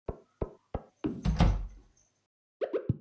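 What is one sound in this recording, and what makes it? A door opens and shuts with a creak.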